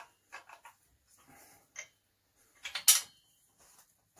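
Metal tools clink and knock against a metal engine part.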